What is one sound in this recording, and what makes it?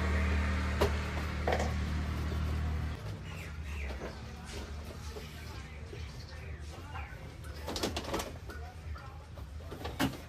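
Small objects knock and clatter as they are handled on shelves nearby.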